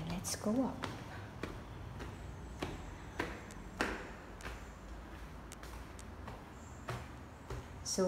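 Footsteps thud on hard stairs.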